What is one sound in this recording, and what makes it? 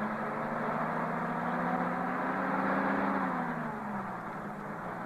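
A bus engine drones steadily, then winds down.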